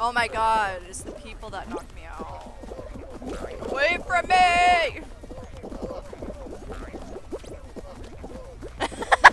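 Many small cartoon figures patter along with quick, light footsteps.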